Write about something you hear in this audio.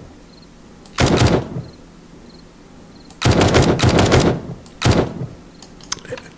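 A rifle fires in short bursts of loud shots.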